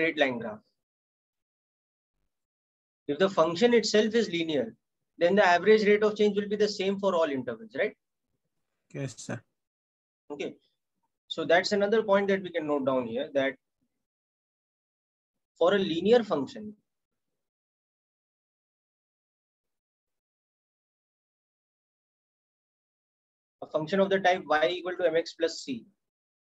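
A man speaks calmly into a close microphone, in short bursts with long pauses.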